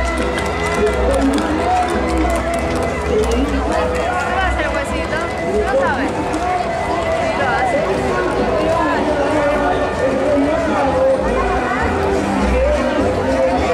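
Horse hooves clop on pavement.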